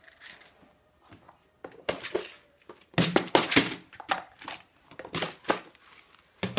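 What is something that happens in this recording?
A plastic box lid clicks open and shut.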